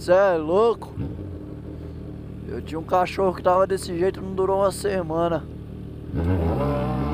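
A motorcycle engine idles and revs in short bursts.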